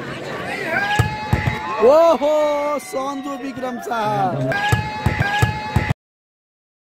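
A volleyball is struck hard with a hand.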